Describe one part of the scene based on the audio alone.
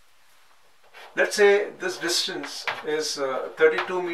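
Chalk scrapes and taps on a board.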